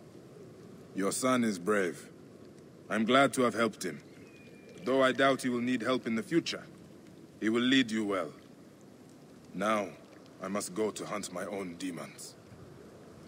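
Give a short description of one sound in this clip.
A man answers in a low, calm voice, close by.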